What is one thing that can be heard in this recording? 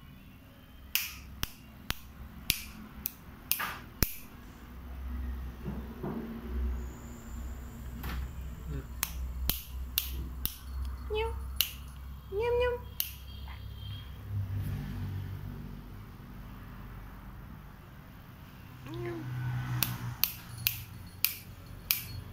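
Fingers snap sharply, again and again.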